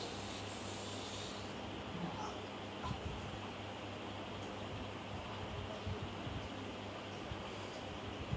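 A woman moans nearby.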